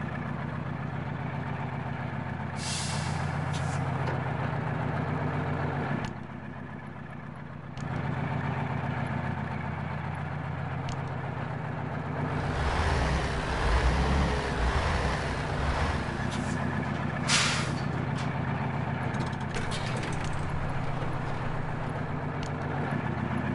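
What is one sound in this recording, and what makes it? A heavy truck engine rumbles steadily and revs.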